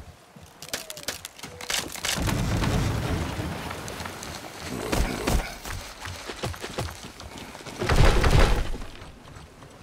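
A heavy log creaks and thuds as it is lifted and dropped.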